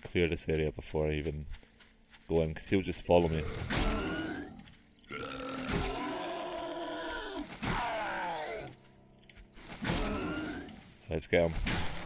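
A zombie groans and snarls close by.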